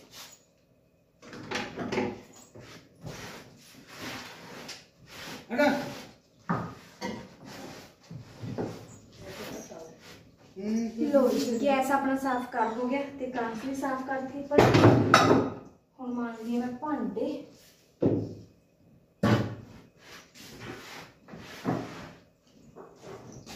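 Dishes and pots clink and clatter.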